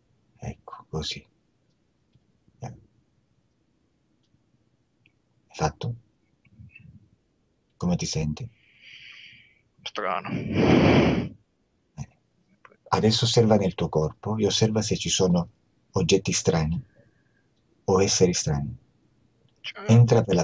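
A middle-aged man speaks calmly through an online call, with pauses.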